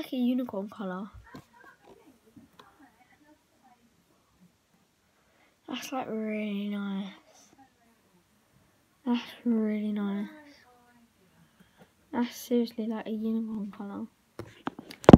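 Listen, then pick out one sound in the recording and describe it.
A young girl talks close to a microphone, calmly and with pauses.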